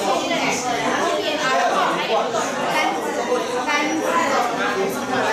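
A woman speaks through a microphone in a room with echo.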